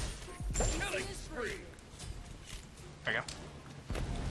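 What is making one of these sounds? Magic blasts crackle and hit during a fight.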